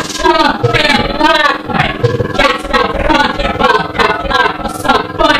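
A young man sings loudly and energetically, close by.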